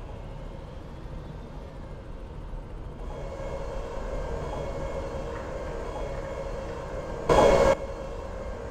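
A tank engine idles with a low, steady rumble.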